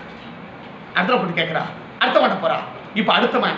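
A man speaks calmly and clearly into a nearby microphone.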